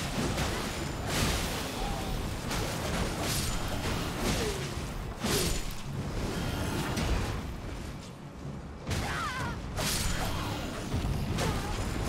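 Creatures grunt and cry out in battle.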